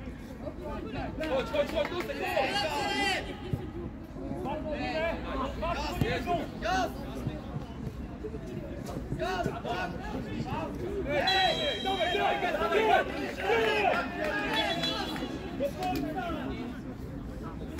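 Young men shout and call to each other across an open pitch outdoors.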